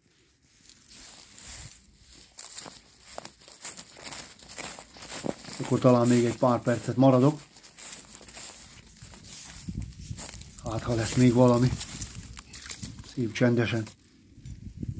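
Footsteps crunch through dry reeds and grass.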